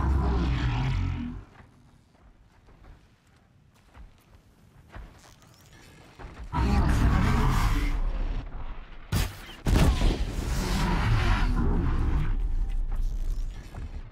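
A bow creaks as its string is drawn back.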